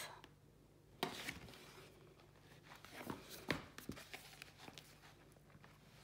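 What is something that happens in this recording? A book is handled and set down with soft knocks.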